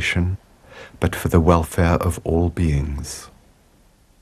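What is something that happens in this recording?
An older man speaks calmly nearby.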